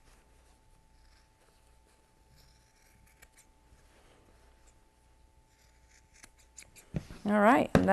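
Scissors snip through fabric with faint clicks.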